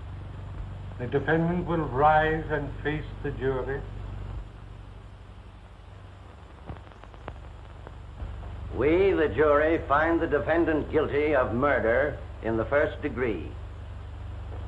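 A middle-aged man speaks forcefully, with pauses.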